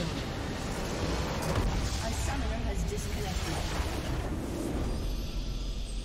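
A large structure explodes with a loud crashing blast.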